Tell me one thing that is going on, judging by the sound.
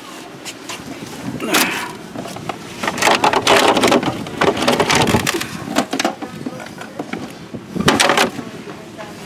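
Plastic toy figures clatter and rattle as a hand sorts through them.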